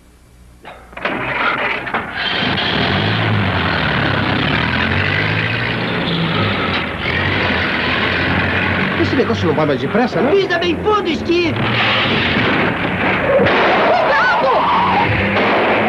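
An old car engine chugs and rumbles steadily as the car drives along.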